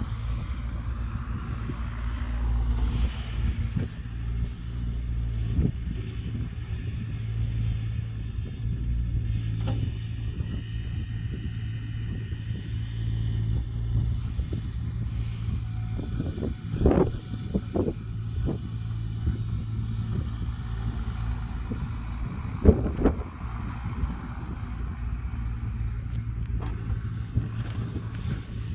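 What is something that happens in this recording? An excavator engine rumbles steadily in the distance.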